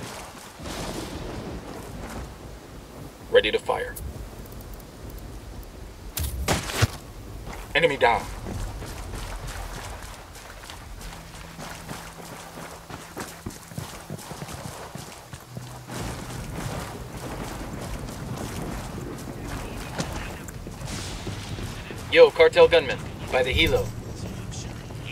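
Footsteps crunch over dirt and gravel.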